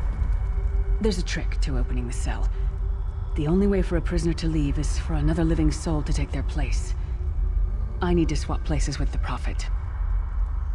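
A woman speaks calmly and clearly, close up.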